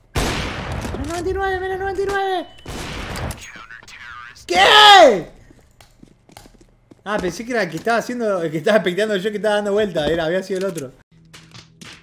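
A young man talks excitedly into a headset microphone.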